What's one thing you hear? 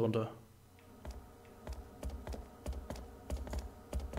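Footsteps thud slowly on wooden stairs.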